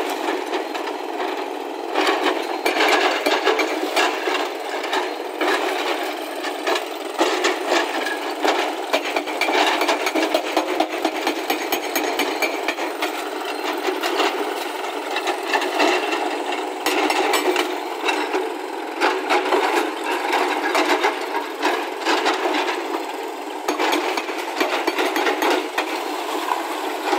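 A hydraulic rock breaker hammers rapidly against stone.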